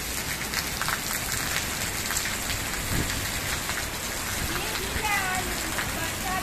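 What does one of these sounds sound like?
Heavy rain falls on trees and grass outdoors.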